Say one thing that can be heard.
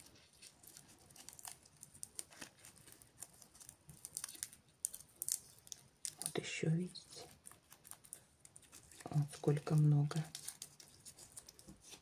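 Dry plant husks crackle and rustle between fingers.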